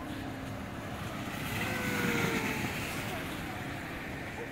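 A snow tube slides over snow with a hissing scrape.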